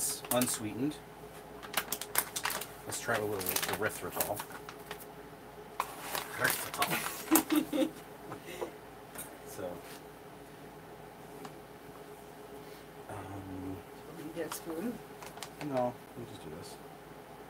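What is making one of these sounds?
A plastic bag crinkles in a man's hands.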